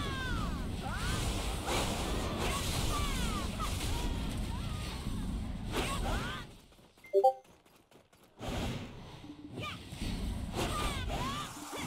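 Magic blasts whoosh and crackle during a fight.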